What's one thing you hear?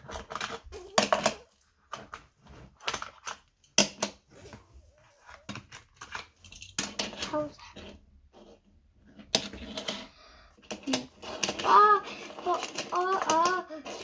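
Small plastic toys clatter and click against a hard tabletop.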